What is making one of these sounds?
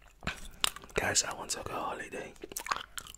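A man whispers softly into a close microphone.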